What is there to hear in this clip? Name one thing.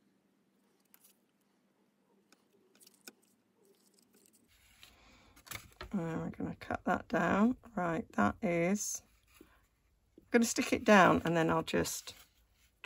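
Paper rustles and crinkles softly as hands fold it.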